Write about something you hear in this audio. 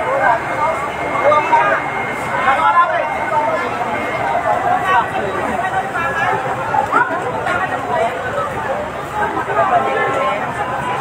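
A crowd of people talks and shouts excitedly close by, outdoors.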